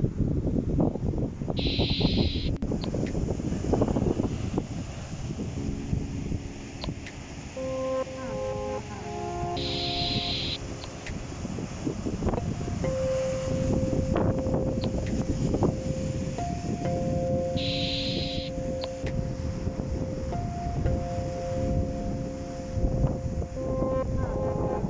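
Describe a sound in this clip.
Waves break and wash over rocks along the shore.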